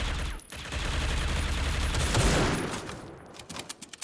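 A rifle fires a single loud, booming shot.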